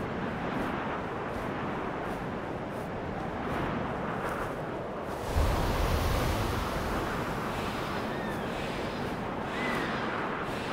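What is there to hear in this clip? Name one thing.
Wind rushes past steadily, swelling into a louder gust partway through.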